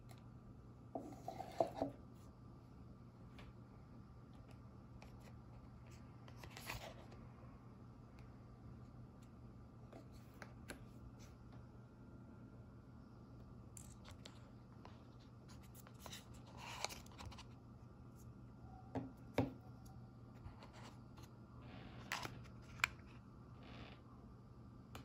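Cardboard packaging rustles and scrapes as a box is handled and opened.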